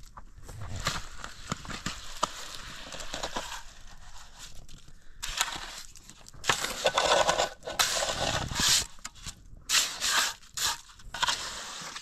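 A steel trowel scrapes mortar across concrete blocks.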